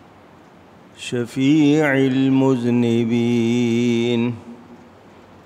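A man chants in a long, drawn-out melodic voice through a microphone, heard over a loudspeaker.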